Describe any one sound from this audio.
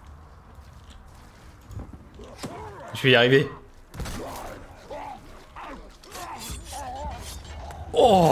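Swords clash in a game fight.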